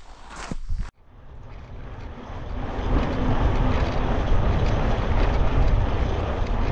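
Wind rushes loudly against the microphone.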